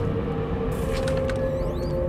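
A metal door handle clicks as it is pressed down.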